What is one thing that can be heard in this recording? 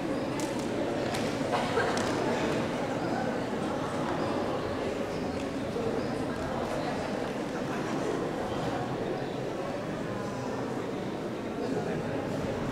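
Music plays through loudspeakers in a large echoing hall.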